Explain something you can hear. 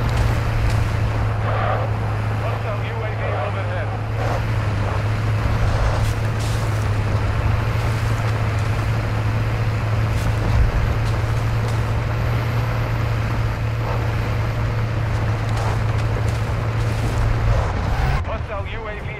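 A truck engine rumbles steadily as it drives over rough ground.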